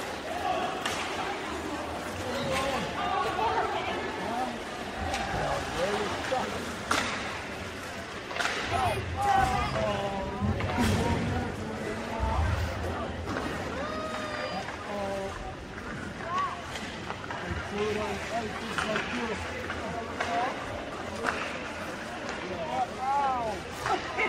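Spectators talk and call out in a large echoing arena.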